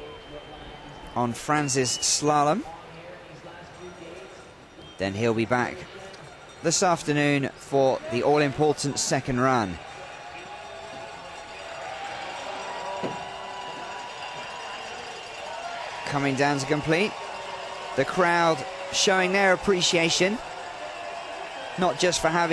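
A sit-skier's ski scrapes and hisses over hard snow.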